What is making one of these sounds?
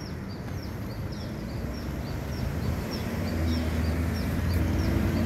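Traffic hums along a nearby road.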